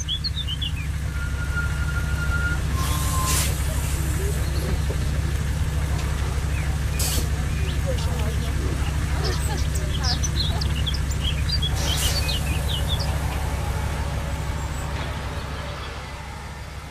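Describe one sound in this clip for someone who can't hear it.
A bus engine rumbles low as the bus drives past.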